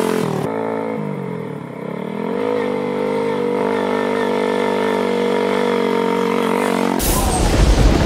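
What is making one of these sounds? A vehicle engine hums as it approaches along a road.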